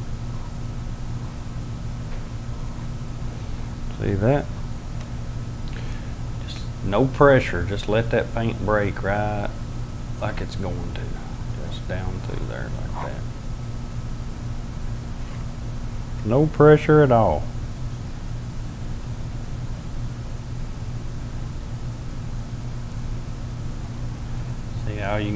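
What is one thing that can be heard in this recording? A palette knife scrapes softly across canvas.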